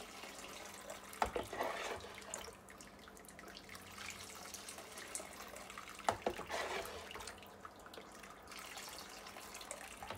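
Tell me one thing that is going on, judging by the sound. Liquid pours from a plastic jug and splashes into a bowl.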